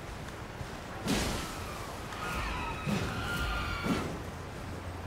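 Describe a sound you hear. Heavy blows land with loud, booming thuds.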